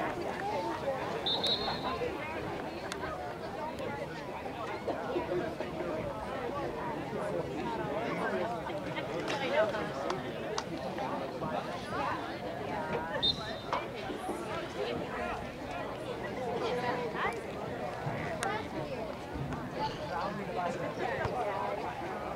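A crowd of spectators chatters and calls out from the sidelines outdoors.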